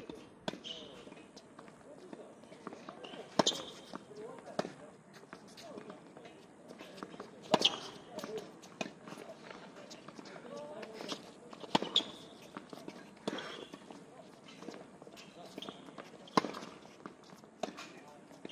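Tennis rackets strike a ball back and forth at a steady pace.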